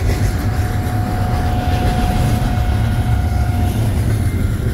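Steel wheels squeal briefly on the rails.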